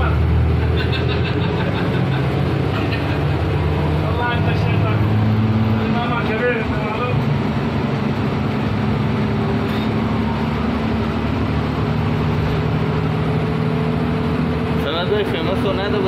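A bus engine hums steadily while driving along a road.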